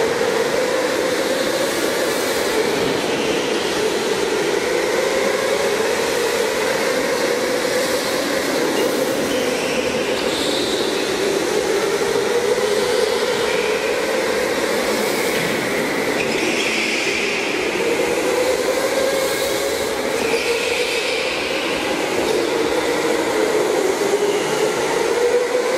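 Go-kart engines buzz and whine in an echoing indoor hall.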